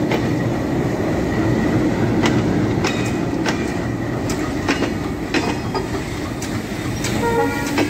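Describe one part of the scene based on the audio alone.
A diesel-electric locomotive rumbles past close by.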